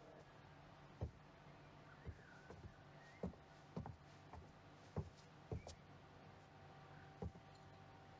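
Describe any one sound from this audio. Footsteps tap slowly on a hard floor.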